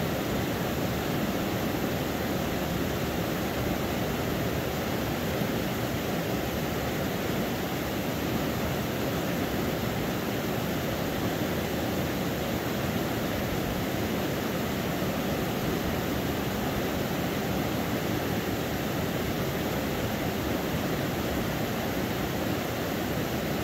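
Water laps gently against rocks along a shore.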